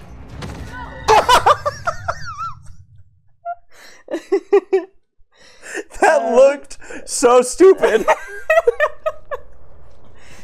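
Two young men laugh loudly close to a microphone.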